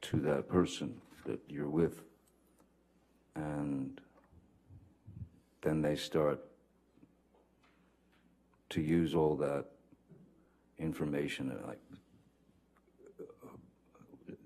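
A man speaks slowly through a microphone in short bursts with long pauses.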